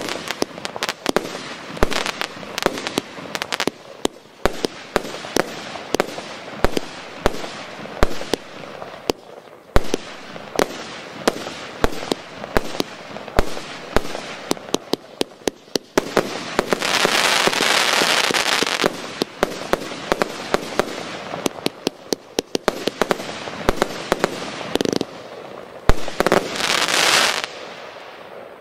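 Fireworks burst with sharp bangs in quick succession outdoors.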